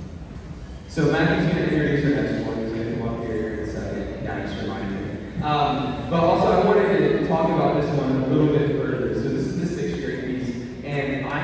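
A school band plays loudly in a large echoing gym.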